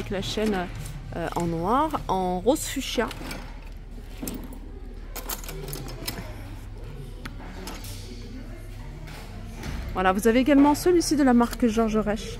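Metal bag chains clink softly as bags are handled.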